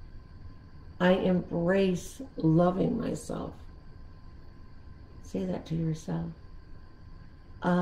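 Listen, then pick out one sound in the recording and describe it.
An elderly woman speaks slowly and calmly, close to the microphone, with long pauses.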